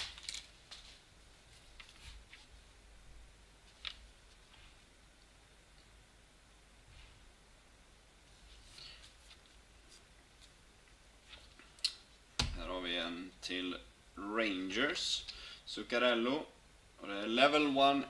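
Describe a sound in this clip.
Stiff cards rustle and click softly as they are shuffled by hand.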